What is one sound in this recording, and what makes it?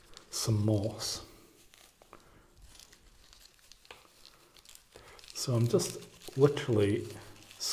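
Leaves and moss rustle softly under hands.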